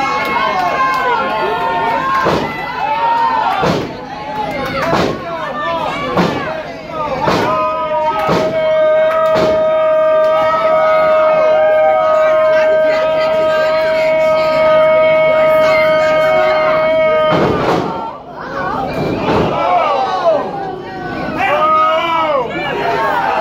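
A crowd cheers and shouts loudly nearby.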